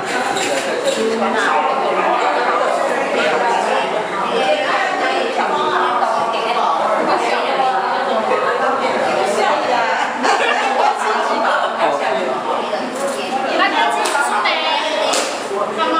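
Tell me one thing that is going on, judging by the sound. A crowd of middle-aged women chatter and talk over one another nearby.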